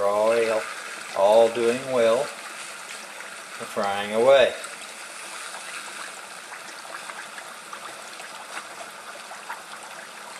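Hot oil sizzles and bubbles steadily.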